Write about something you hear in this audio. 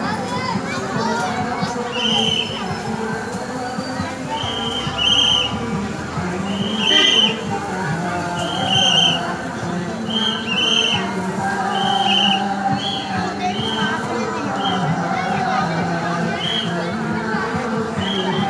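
A large crowd of children and men chants together outdoors.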